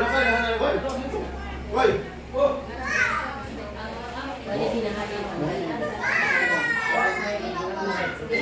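Dishes and utensils clink as food is served.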